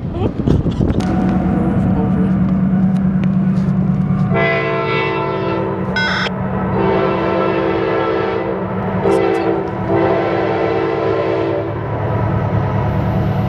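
A diesel locomotive engine rumbles steadily, growing nearer.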